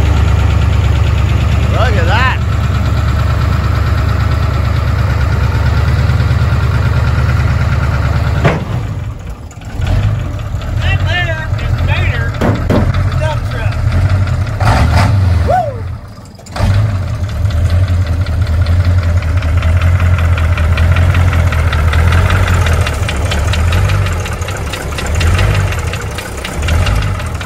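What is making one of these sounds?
A diesel truck engine idles with a loud, low rumble.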